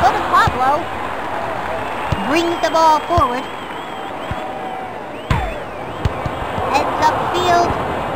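A ball is kicked with dull thuds several times.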